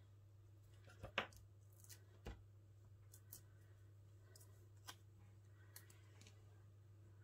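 Tweezers and paper pieces tap and rustle on a mat.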